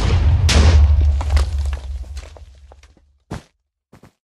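An explosion booms and slowly fades.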